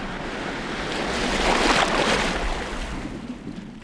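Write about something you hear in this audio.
Surf crashes and churns loudly.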